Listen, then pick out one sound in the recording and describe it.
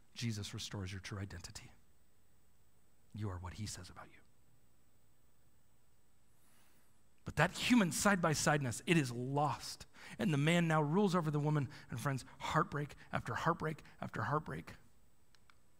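A man speaks with animation through a microphone in a large room.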